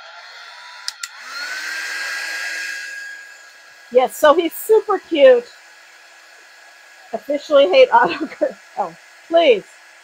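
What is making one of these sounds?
A heat gun blows with a steady whirring hiss.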